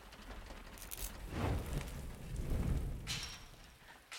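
Flames roar and rumble loudly.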